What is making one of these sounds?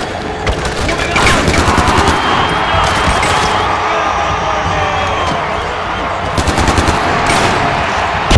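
A rifle fires in rapid bursts, loud and close.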